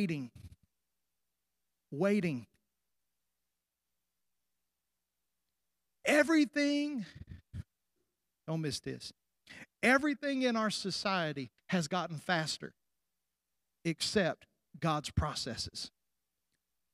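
A middle-aged man preaches with animation through a microphone, heard in a large hall.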